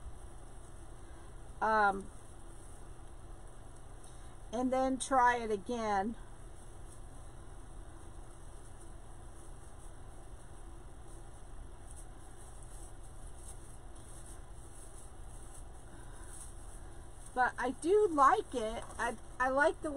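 Plastic tinsel garland rustles softly as a hand fluffs and bends it.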